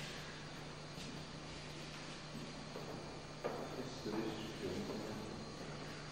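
Footsteps tap on a hard floor in a quiet, echoing room.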